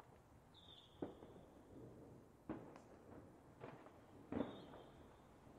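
Fireworks whistle shrilly as they rise.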